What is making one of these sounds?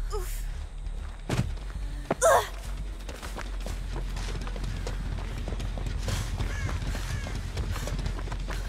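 Footsteps run and rustle through dry, tall stalks.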